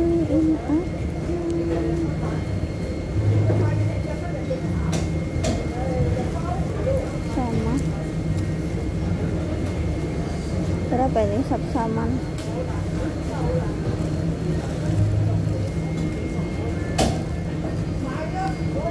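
Men and women chatter in the background.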